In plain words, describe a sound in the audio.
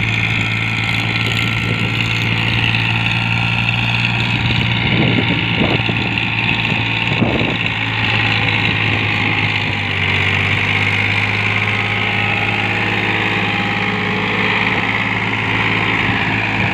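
A tractor blade scrapes through loose soil.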